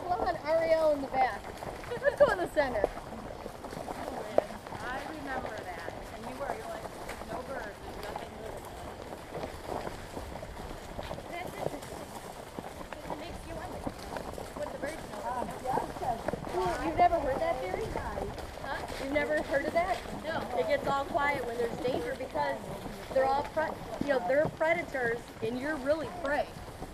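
Horses' hooves plod and crunch through dry leaves.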